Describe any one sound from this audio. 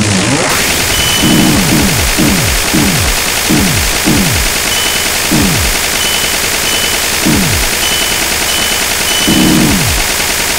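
Laser blasts fire again and again with deep, falling booms.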